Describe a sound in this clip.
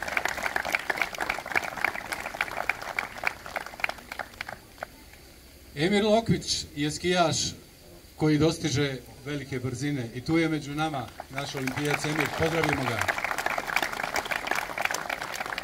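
An audience claps and applauds outdoors.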